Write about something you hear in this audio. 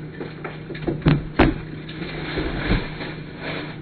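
Objects knock and thump against a counter.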